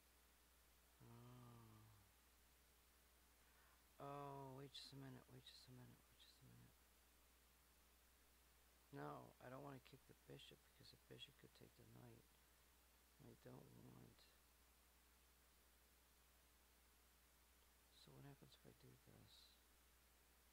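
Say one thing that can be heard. A man talks calmly into a close microphone, in short bursts with pauses.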